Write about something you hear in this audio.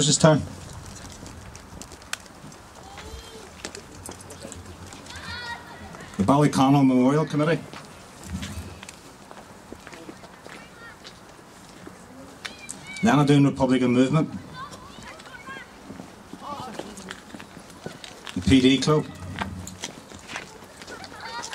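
A small crowd of adults murmurs quietly outdoors.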